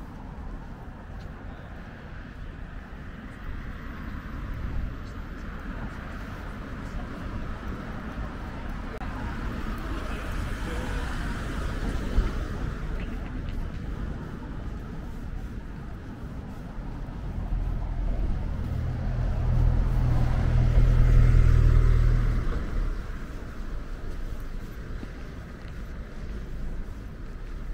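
Distant city traffic rumbles steadily outdoors.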